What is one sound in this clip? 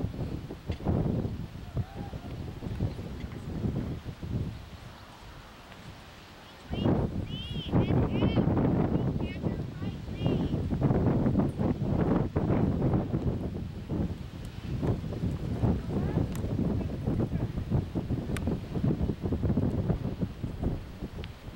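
Outdoors, wind rumbles.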